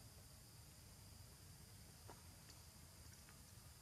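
Dry leaves rustle faintly as a monkey shifts on the ground.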